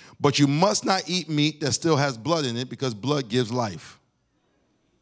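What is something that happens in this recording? A man speaks with animation through a microphone in a reverberant hall.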